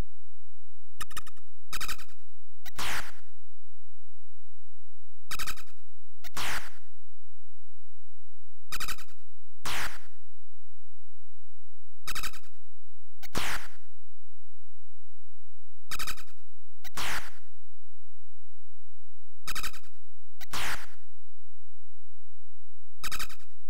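Short electronic game beeps and buzzing sound effects play in repeated bursts.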